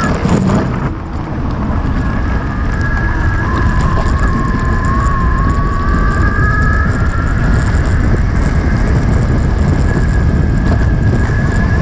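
Knobbly wheels rumble steadily over rough asphalt.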